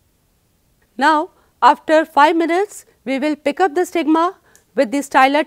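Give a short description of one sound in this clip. A middle-aged woman speaks calmly and clearly, close by, as if presenting.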